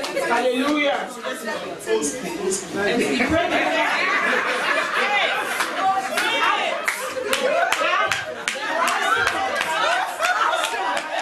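A crowd of people cheers and shouts.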